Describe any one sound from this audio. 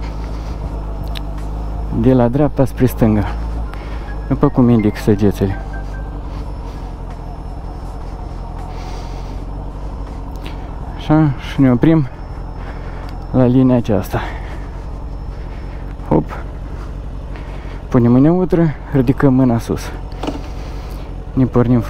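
A motorcycle engine hums as it rides slowly around a course.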